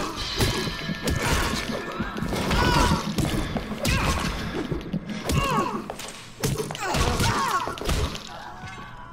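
Heavy blows of a metal wrench thud and clang against a body.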